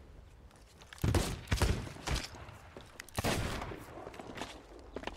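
A gun fires with a loud bang.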